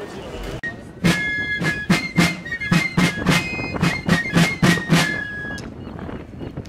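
Marching drums beat a snappy rhythm outdoors.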